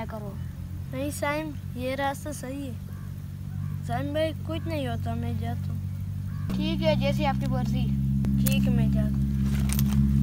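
A young boy speaks up close.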